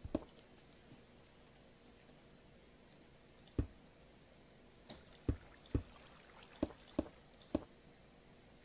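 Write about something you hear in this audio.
Stone blocks are placed with dull thuds.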